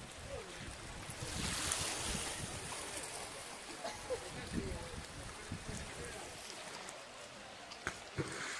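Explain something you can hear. Water splashes and laps as a woman swims with her arms.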